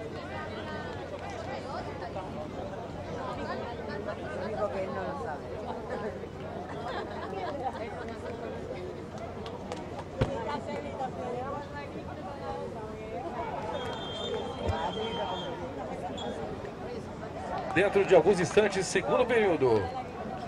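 A crowd chatters outdoors in the distance.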